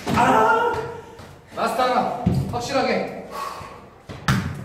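A young man shouts with animation nearby, in an echoing room.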